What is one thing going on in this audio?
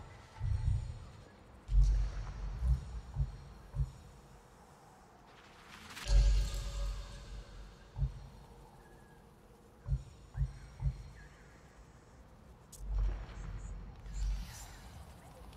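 Soft low thuds and chimes sound as game menu options are picked.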